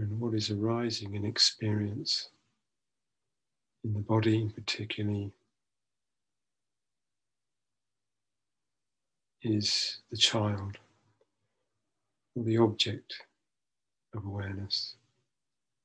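A middle-aged man speaks slowly and calmly into a microphone, with long pauses, heard over an online call.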